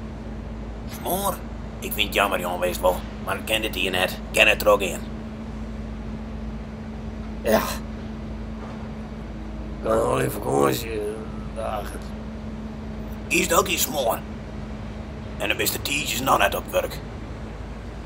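An older man speaks in a calm, firm voice nearby.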